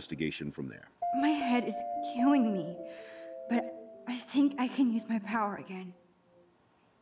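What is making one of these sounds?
A young woman speaks quietly and wearily.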